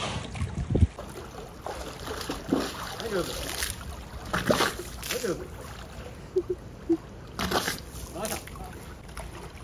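Water splashes as a walrus rolls and flaps in a pool.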